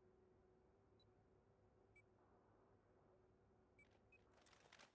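Short electronic menu beeps sound now and then.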